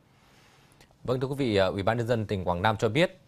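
A man speaks calmly and clearly into a microphone, like a news presenter.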